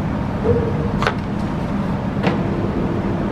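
Organ keys or stop buttons click.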